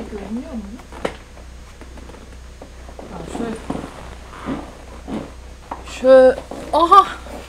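A young woman speaks close to a microphone with animation.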